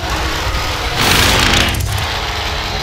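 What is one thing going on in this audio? A heavy blow lands with a loud crash.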